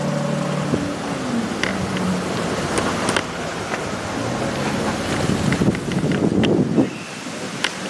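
A car drives slowly past close by.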